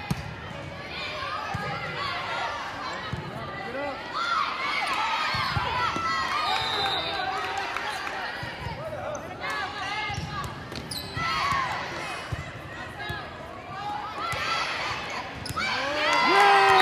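Young girls shout and call out on court in a large echoing hall.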